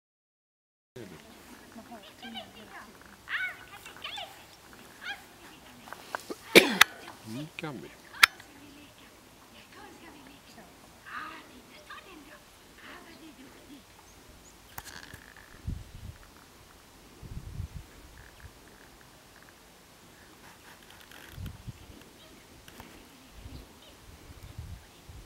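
A man talks to a dog outdoors with animation.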